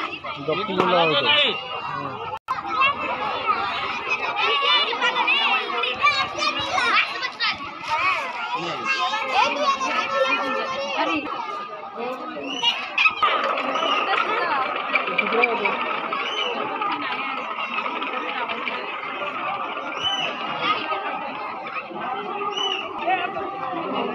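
A crowd of children and adults chatter and call out nearby, outdoors.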